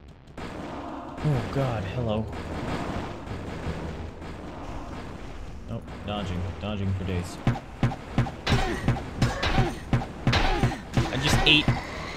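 Fireballs whoosh and burst in quick succession.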